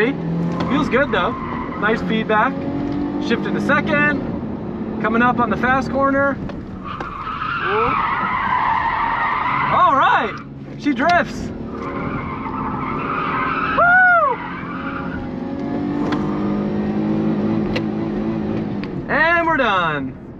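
A car engine revs hard and drones throughout.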